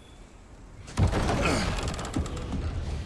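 A heavy wooden door creaks open loudly.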